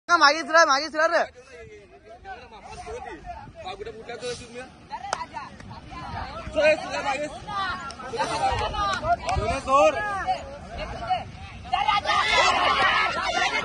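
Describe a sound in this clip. Young men shout and call out excitedly outdoors.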